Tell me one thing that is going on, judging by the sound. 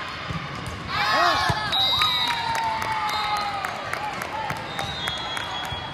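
A crowd of spectators cheers loudly after a point.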